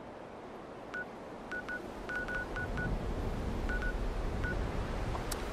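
Short electronic menu beeps sound several times in quick succession.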